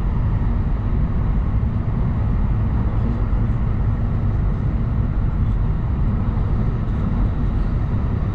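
A train rumbles steadily as it runs along the tracks.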